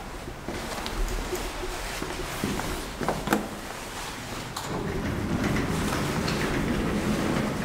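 Elevator doors rumble open.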